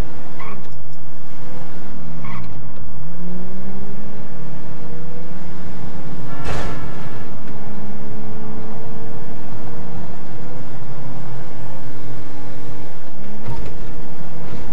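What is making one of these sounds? A car engine revs hard and shifts gears as it speeds along.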